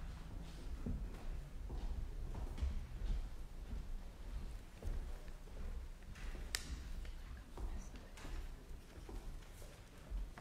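Footsteps shuffle across a stone floor as a group walks in procession.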